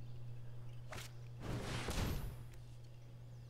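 A magical whooshing sound effect plays.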